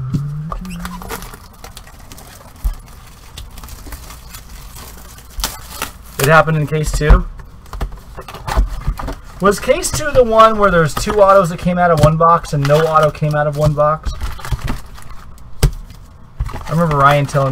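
Cardboard card packs rustle and knock as they are handled.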